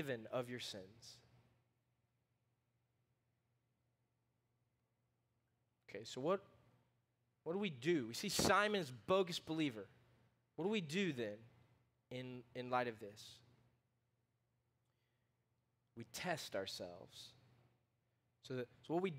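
A man speaks calmly through a microphone, with pauses.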